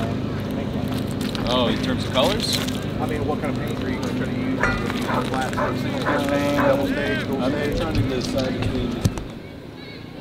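A man talks with animation close by, outdoors.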